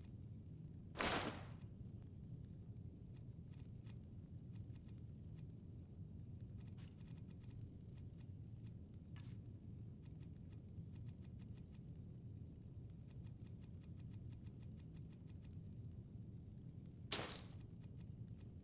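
Coins jingle briefly, twice.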